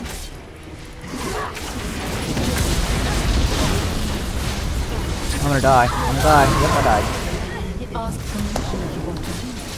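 Game spell effects and combat sounds clash and whoosh.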